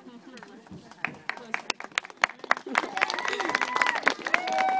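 A group of children claps.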